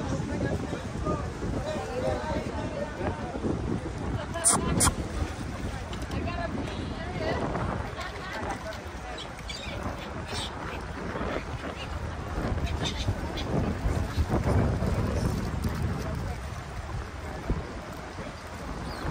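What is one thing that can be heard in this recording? Choppy lake water laps against a stone wall.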